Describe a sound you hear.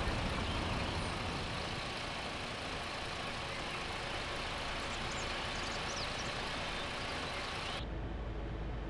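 Tyres hiss on the road outside a moving bus.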